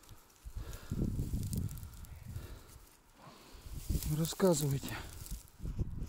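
Dry grass rustles and crackles under hands.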